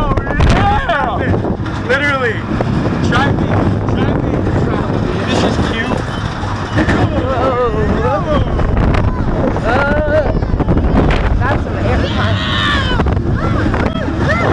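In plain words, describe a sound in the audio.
A coaster rattles and rumbles along its track.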